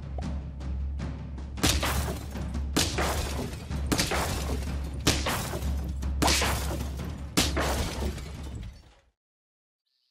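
Game battle effects thump and crash in quick bursts.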